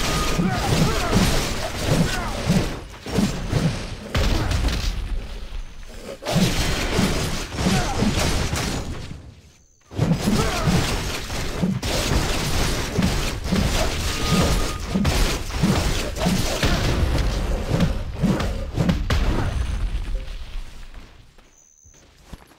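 Blades slash and strike in a rapid fight.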